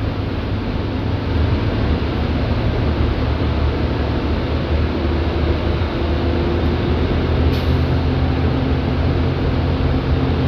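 The bus rattles and hums inside as it rolls over the road.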